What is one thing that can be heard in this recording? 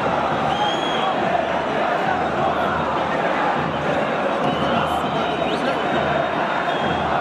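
A huge stadium crowd chants and roars loudly in a large open space.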